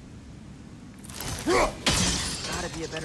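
An axe whooshes through the air.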